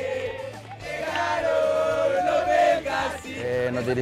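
A young man shouts loudly.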